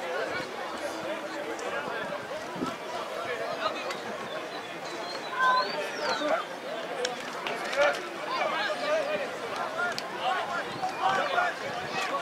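A crowd murmurs and chatters outdoors at a distance.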